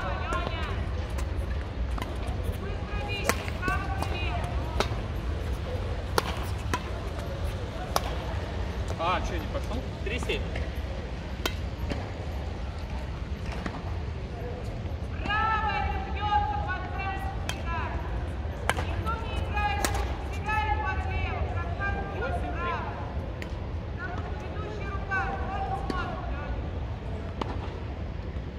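Men call out and talk across a court.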